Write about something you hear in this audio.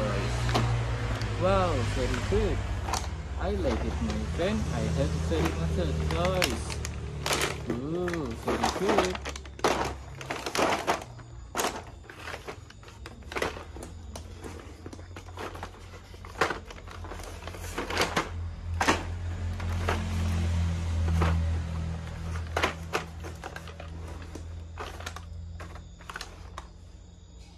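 Plastic toy packages crinkle and clatter as they are set down on a hard floor.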